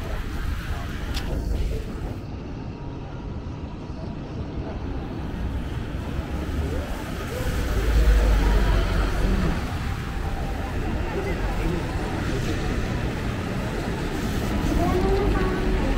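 Traffic rumbles steadily through a busy street outdoors.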